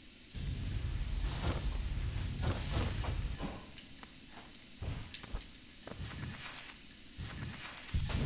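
A game character dashes with a sharp whoosh.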